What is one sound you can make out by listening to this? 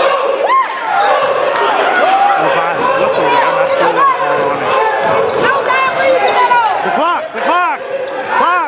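Sneakers squeak sharply on a hard court floor.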